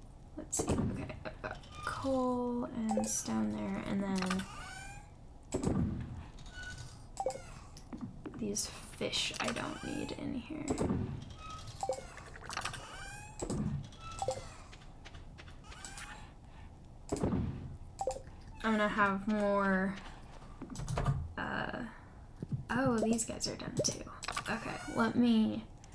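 Short clicks and pops sound as menus open and close.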